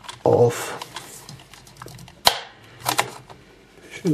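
A plastic pry tool scrapes and clicks against a plastic cover.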